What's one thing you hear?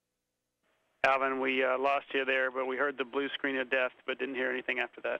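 A man speaks calmly over a radio link.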